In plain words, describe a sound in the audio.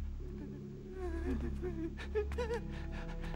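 A man groans and gasps in pain nearby.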